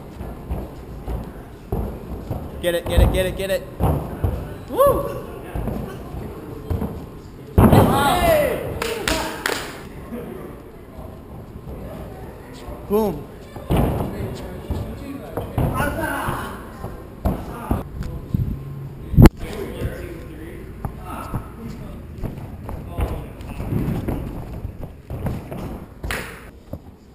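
Bare feet thud and slap on a padded floor as a person lands flips.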